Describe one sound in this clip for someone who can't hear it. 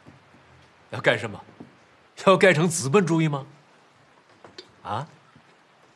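A middle-aged man laughs softly nearby.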